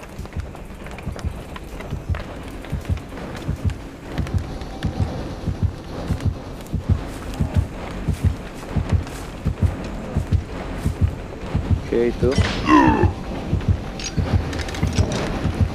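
Heavy footsteps thud in a steady rhythm.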